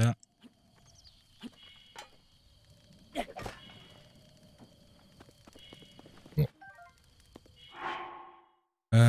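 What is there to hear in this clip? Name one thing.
Footsteps crunch on gravel as a game character runs.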